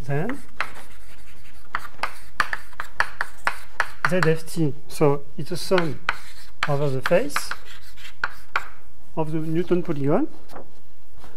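A man speaks calmly, as if lecturing.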